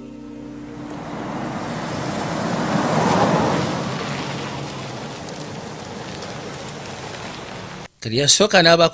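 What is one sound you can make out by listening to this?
A car drives past on a street, swelling and fading.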